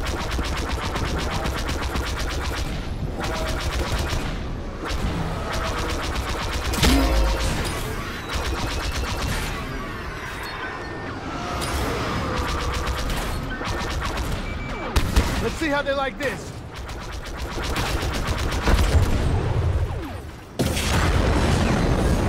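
Starfighter engines roar steadily.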